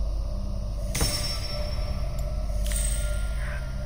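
A menu chime sounds as an option is chosen.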